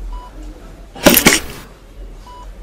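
A pump bottle squirts out foam.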